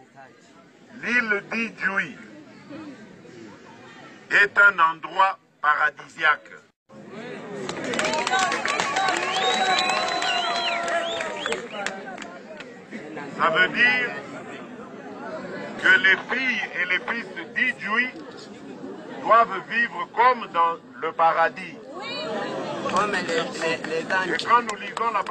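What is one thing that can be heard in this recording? A man speaks loudly into a microphone over a loudspeaker, outdoors.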